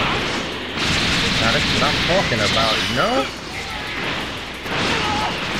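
Energy blasts roar and crackle in bursts.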